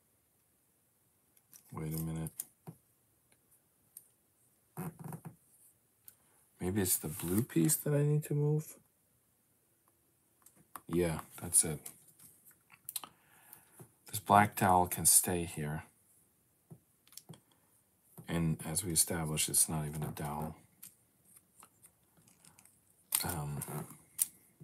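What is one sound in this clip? Small plastic pieces click and rattle as hands handle them.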